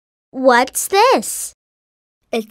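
A young girl asks a question in a bright, cheerful voice.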